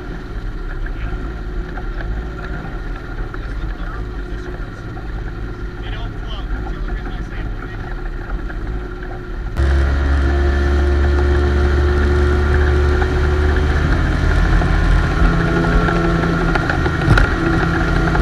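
Water churns and splashes in the boat's wake.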